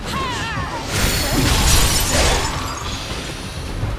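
Fire bursts and crackles in a loud blast.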